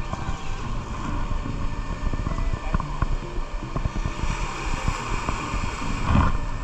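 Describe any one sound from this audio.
Waves slosh and splash against a sea wall close by.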